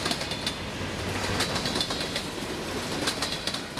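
A diesel locomotive engine drones as it passes.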